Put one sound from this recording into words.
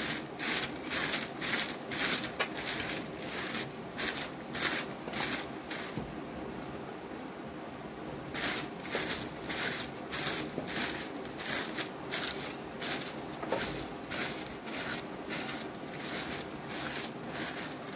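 A hoe scrapes and chops into dry soil.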